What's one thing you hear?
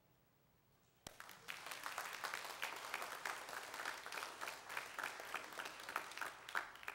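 A crowd applauds.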